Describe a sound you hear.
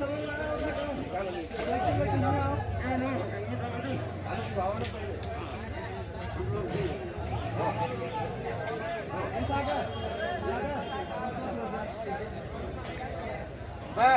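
A crowd of men and women talks and calls out loudly all around, close by, outdoors.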